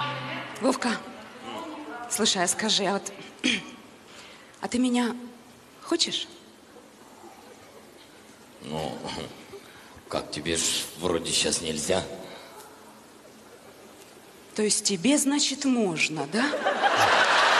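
A young woman speaks with attitude, close and clear.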